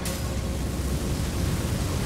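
A fireball roars and bursts.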